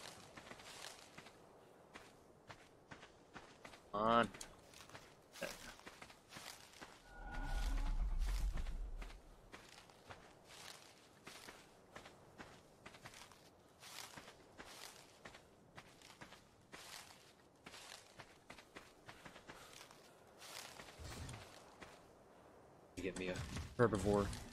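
Leaves rustle and snap in quick, repeated bursts as bushes are picked.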